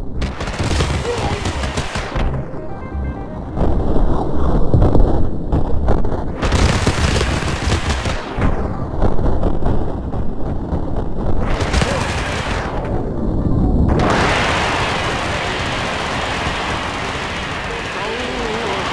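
Gunshots fire rapidly.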